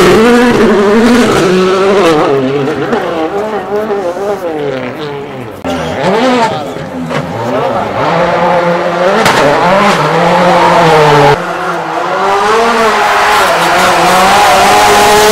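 A rally car engine roars and revs up and down close by.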